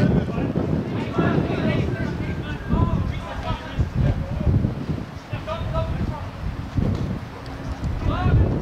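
Young men shout to each other across an open field, some distance away.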